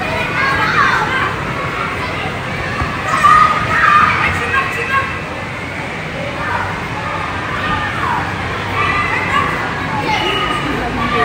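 Children shout and call out excitedly in a large echoing hall.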